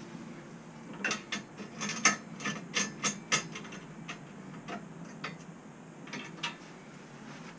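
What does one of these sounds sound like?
Metal clicks and rattles sharply close by.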